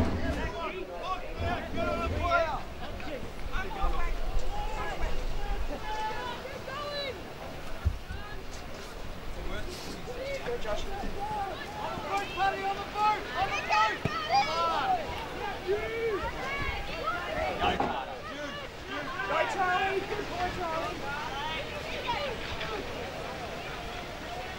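Young women players shout and call to each other across an open field.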